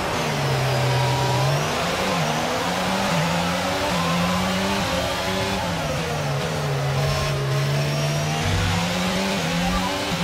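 Another racing car engine drones close ahead.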